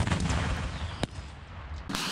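A grenade launcher fires with a loud bang.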